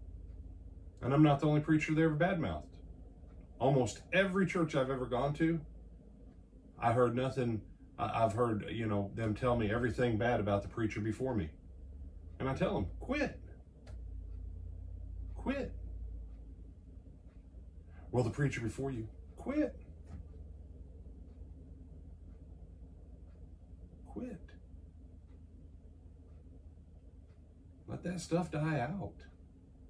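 A middle-aged man speaks calmly into a nearby microphone, with pauses.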